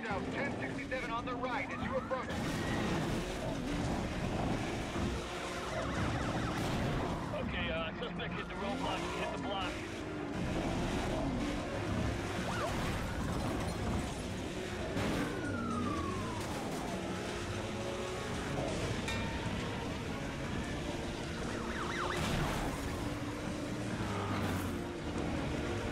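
A race car engine roars steadily.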